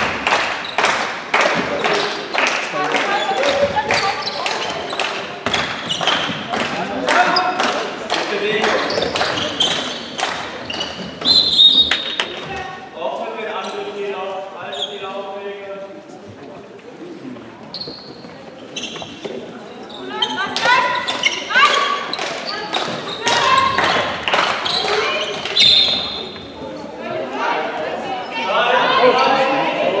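Young women shout and call out to each other across the court.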